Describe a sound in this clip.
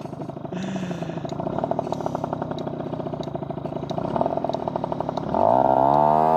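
A motorcycle engine putters at low speed close by.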